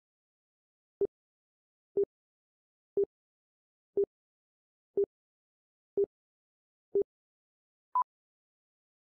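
Short electronic beeps sound once a second, the last one higher in pitch.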